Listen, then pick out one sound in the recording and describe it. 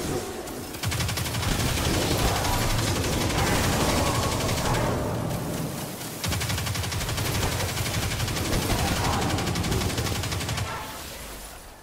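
A rapid-fire gun shoots in fast, steady bursts.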